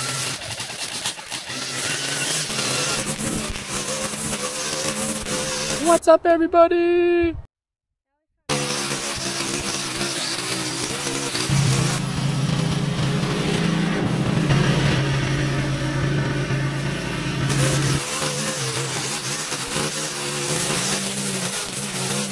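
A string trimmer whirs steadily, cutting grass.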